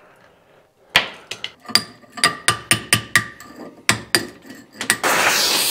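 A hammer strikes metal in quick, ringing blows.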